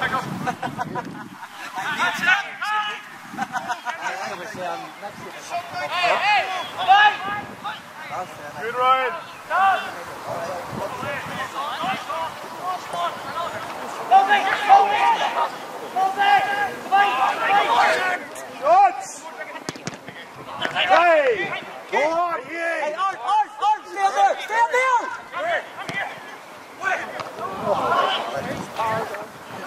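Young players shout to each other outdoors on an open field.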